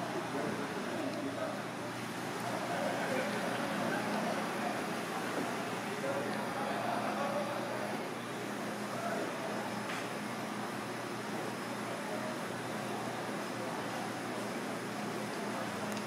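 Water boils and bubbles steadily in a pot.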